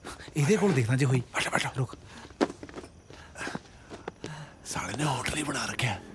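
Bodies thump and scuffle on the floor.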